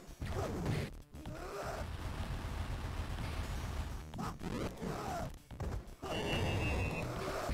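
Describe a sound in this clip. A fireball whooshes and bursts.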